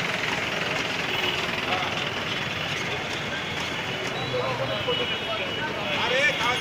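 A crowd of people chatters loudly outdoors.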